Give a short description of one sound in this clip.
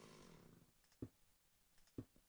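A stone block thuds softly as it is placed.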